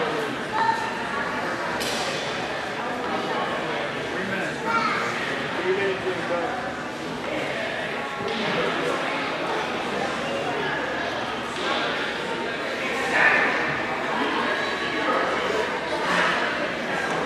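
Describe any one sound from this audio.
Spectators shout and call out.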